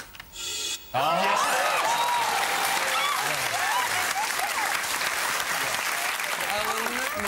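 Women clap their hands in lively applause.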